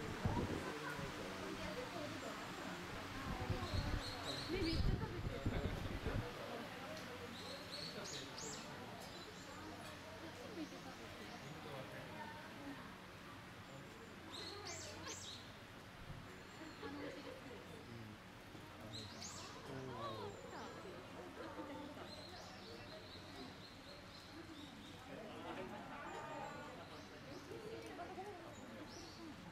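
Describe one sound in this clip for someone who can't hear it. Bamboo leaves rustle close by.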